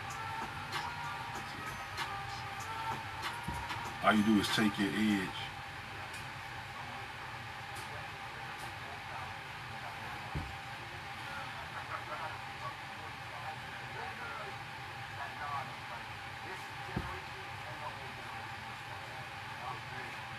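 A small paintbrush dabs and scrapes softly against a shoe.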